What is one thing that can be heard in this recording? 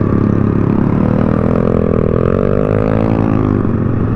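Another motorcycle revs and rides by nearby.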